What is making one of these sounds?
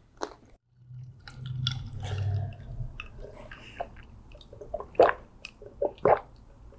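A man gulps a drink loudly.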